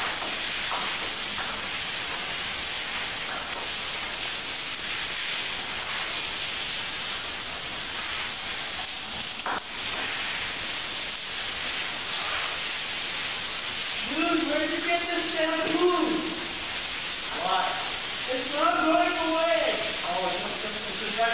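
Shower water sprays and splashes steadily.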